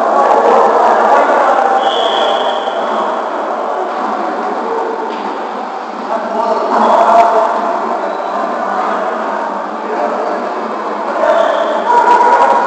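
Men and women talk and call out across a large echoing gym.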